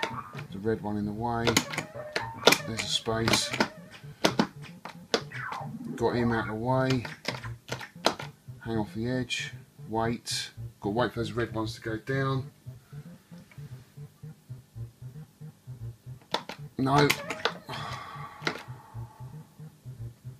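An arcade game plays bleeping electronic music and sound effects.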